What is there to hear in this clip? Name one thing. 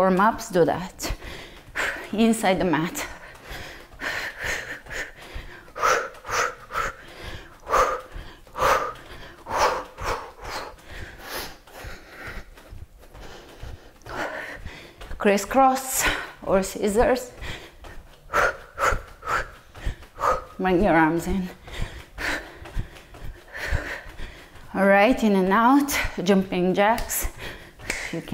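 Bare feet thump and step on a wooden floor.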